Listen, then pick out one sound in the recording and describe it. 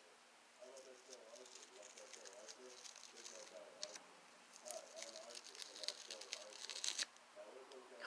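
A sticker peels off fabric with a soft crackling rip.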